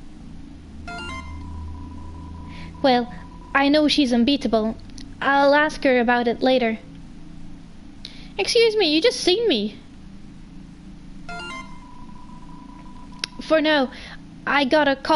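A game's text messages type out with quick electronic beeps.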